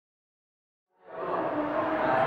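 A teenage boy speaks close by.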